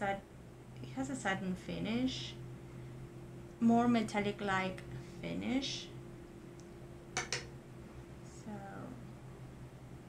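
A woman speaks calmly and close by, in short phrases.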